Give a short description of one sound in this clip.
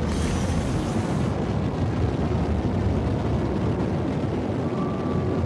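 A spaceship engine roars with a steady, deep rumble.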